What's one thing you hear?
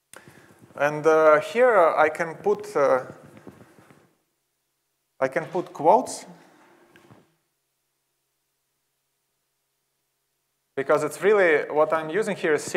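A young man speaks calmly into a microphone in an echoing hall, with pauses.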